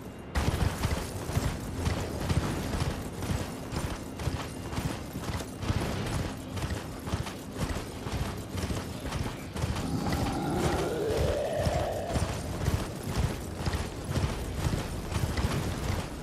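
Hooves of a galloping horse thud rapidly and steadily on the ground.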